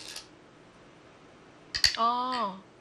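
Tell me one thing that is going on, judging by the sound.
A game stone clicks onto a wooden board.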